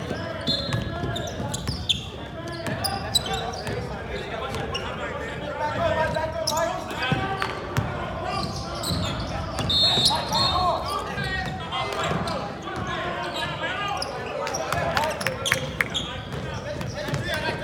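Spectators talk and shout in a large echoing arena.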